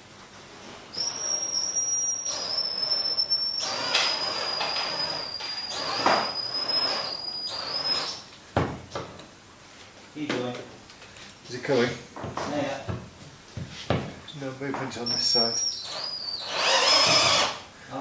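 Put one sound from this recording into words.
An electric drill whirs in steady bursts.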